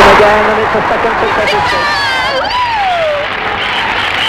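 A woman cries out excitedly.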